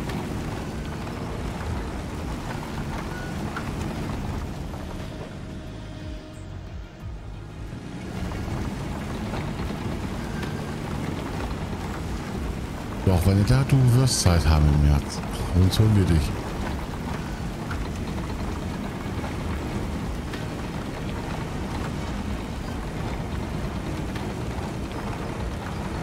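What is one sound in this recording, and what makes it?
A bulldozer engine rumbles steadily.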